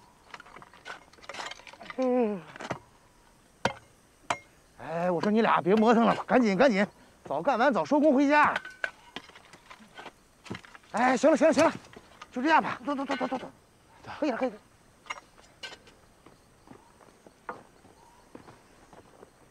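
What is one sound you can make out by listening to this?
Shovels scrape and thud into soil.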